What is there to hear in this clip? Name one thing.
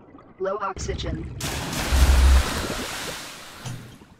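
A diver splashes into water.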